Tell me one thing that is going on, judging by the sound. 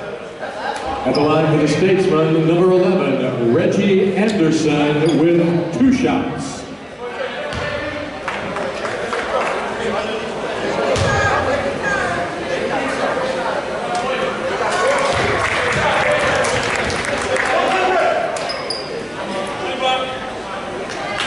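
A crowd chatters in a large echoing gym.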